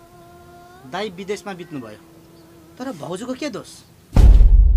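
A young man speaks tensely up close.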